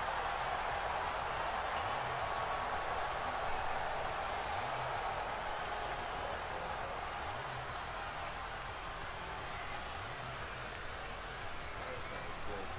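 A large crowd cheers loudly in a big arena.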